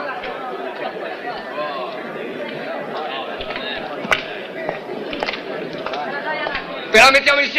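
A crowd of men murmurs and talks at once outdoors.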